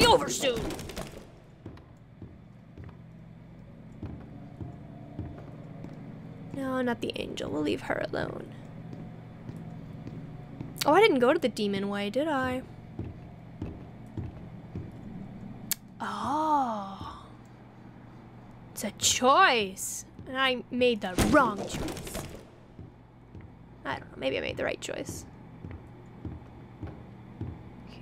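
Footsteps thud slowly on creaking wooden floorboards.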